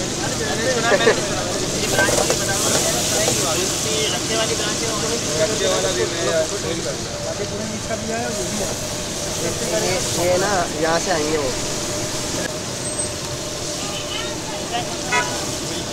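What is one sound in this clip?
Hot oil sizzles steadily in a pan.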